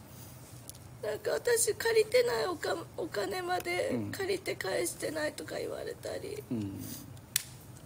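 A young woman speaks tearfully and close up, her voice breaking.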